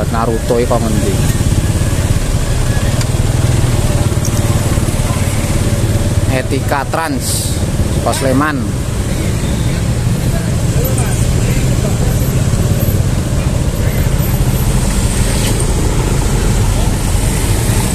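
A scooter engine putters as it creeps through slow traffic.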